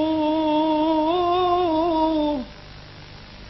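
A man chants a long, wavering held note, heard through an old broadcast recording, then stops.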